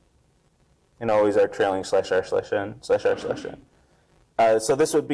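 A man lectures through a microphone in a large hall.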